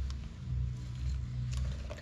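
Dry rice grains patter softly as they are poured from a small bowl.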